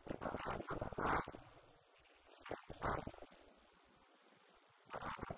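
A woman speaks through a microphone and loudspeaker in an echoing hall, pausing between phrases.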